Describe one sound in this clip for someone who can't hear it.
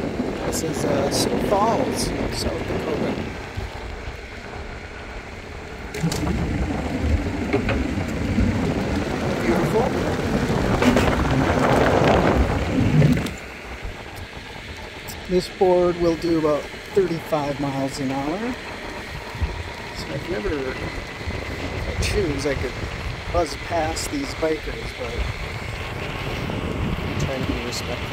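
Skateboard wheels roll with a steady rumble over pavement.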